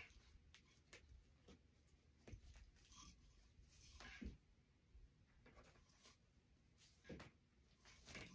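Ribbon and decorations rustle and crinkle as they are handled.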